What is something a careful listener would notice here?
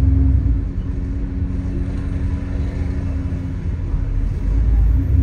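Traffic hums along the street outside.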